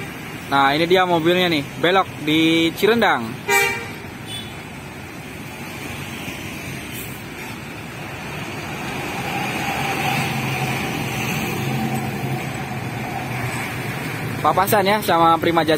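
A large bus engine rumbles close by.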